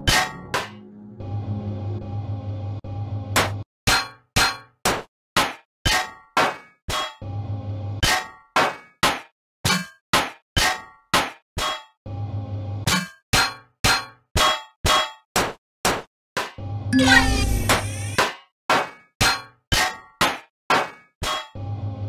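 A mining tool fires in quick, rhythmic zapping pulses.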